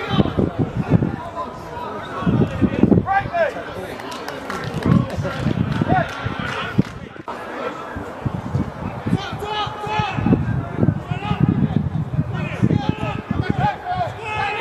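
Men shout and call to each other across an open pitch outdoors.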